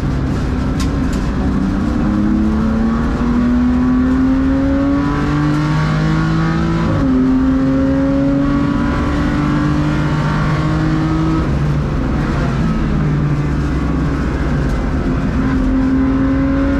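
Tyres hum and rumble on the track.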